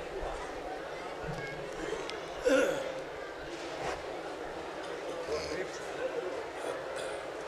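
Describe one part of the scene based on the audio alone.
A man sings into a microphone, amplified over loudspeakers.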